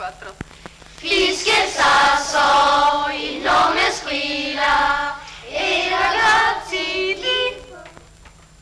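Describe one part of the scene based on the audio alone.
A woman sings in a strong, high voice.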